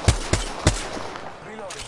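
Gunshots ring out in quick succession.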